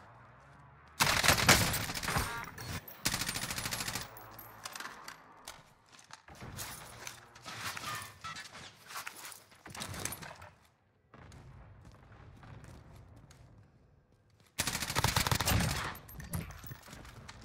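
An automatic rifle fires loud rapid bursts.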